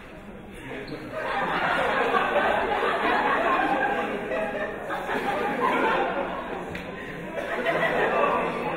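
A group of young people sing together.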